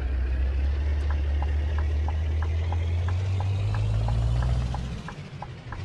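A turn signal ticks at an even pace.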